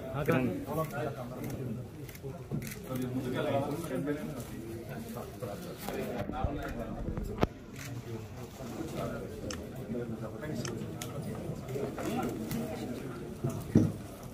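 Several men talk at once nearby.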